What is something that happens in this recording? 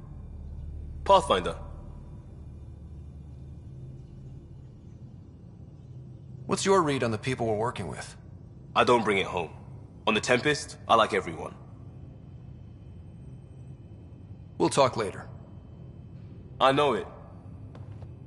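A man answers in a low, calm voice.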